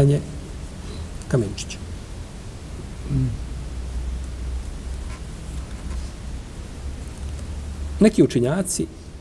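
A middle-aged man speaks slowly and calmly through a microphone.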